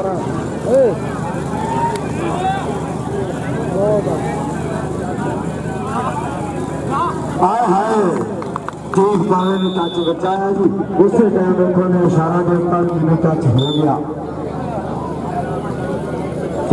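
A large crowd of men chatters and shouts outdoors.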